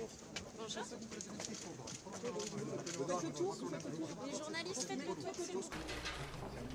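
A crowd of men and women chatter closely.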